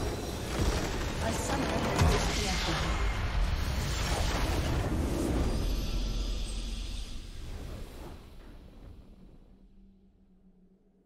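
A huge magical explosion booms and rumbles, then slowly fades away.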